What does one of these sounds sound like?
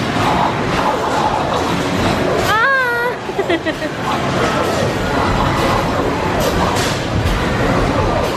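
Arcade game sound effects and music play loudly from a game cabinet.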